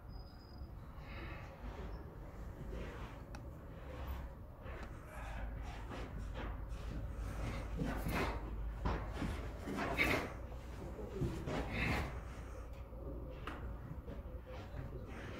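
Feet stamp and shuffle on a padded floor.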